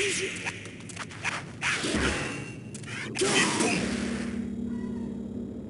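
Fighting game hits and slashes crack sharply.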